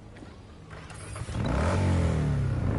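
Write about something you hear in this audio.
A motorcycle engine starts and revs up.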